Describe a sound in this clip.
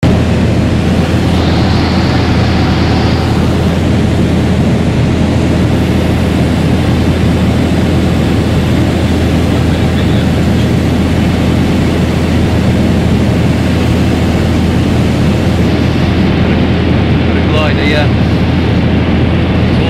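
An aircraft engine drones loudly and steadily, close by.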